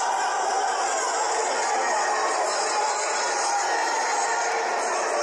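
A large crowd cheers and murmurs steadily in an echoing arena.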